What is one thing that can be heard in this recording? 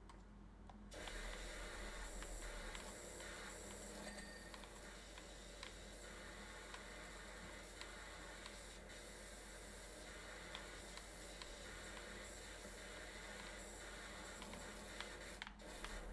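A pressure washer sprays with a steady hiss.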